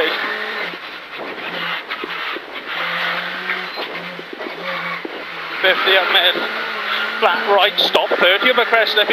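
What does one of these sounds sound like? Gravel and stones rattle against the underside of the car.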